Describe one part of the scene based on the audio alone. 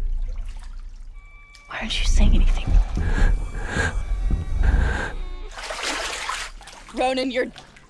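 Water splashes and sloshes.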